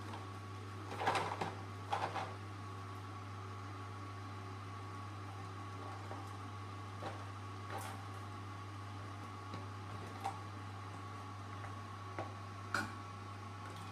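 A plastic container knocks and rustles now and then.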